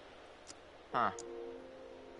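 A metal knob clicks as a hand turns it.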